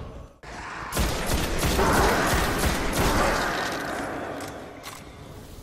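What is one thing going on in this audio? Rapid gunfire blasts and echoes.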